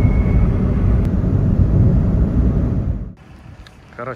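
Traffic rushes past on a busy road.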